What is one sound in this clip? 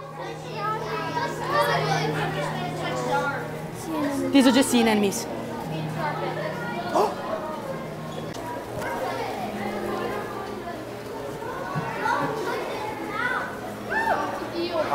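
Adults chatter with a hum of other visitors.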